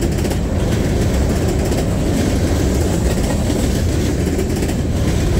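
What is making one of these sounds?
Steel wheels clatter rhythmically over rail joints.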